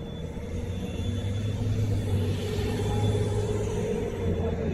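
A car drives by close at hand.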